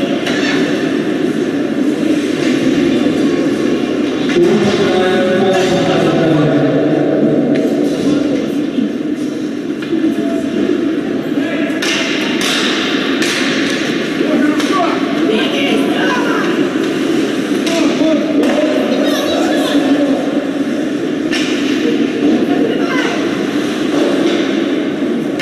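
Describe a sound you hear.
A crowd of spectators murmurs and chatters in a large echoing arena.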